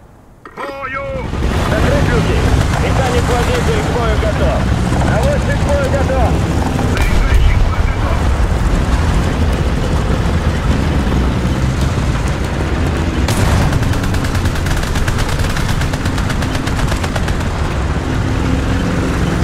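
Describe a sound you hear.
Tank tracks clatter and squeal on the road.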